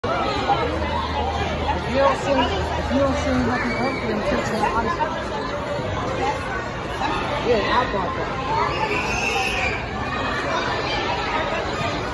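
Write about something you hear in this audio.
A crowd of men, women and children chatter and call out nearby.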